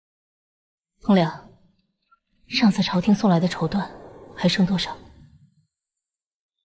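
A young woman speaks calmly and quietly, close by.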